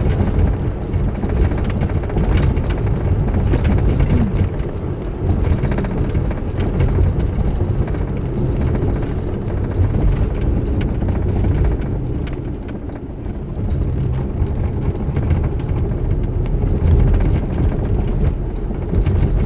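Tyres roll over a rough road.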